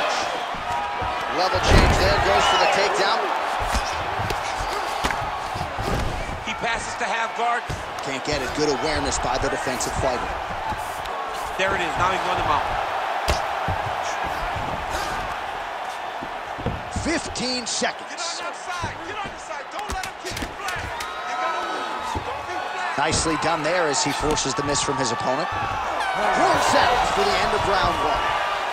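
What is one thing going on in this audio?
Punches thud heavily against a body, over and over.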